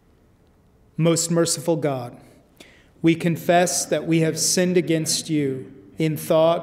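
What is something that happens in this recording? A man speaks calmly and slowly into a microphone, as if reciting a prayer.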